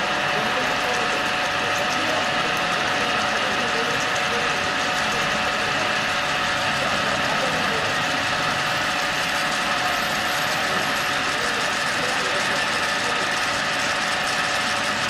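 A drilling machine whirs steadily as its bit cuts into metal.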